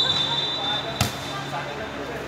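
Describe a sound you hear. A volleyball is struck by a hand with a sharp slap.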